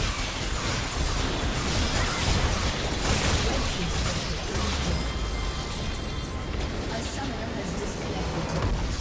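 Game spell effects crash and whoosh in a busy battle.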